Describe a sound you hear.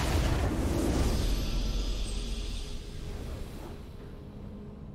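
A triumphant fanfare swells and then fades out.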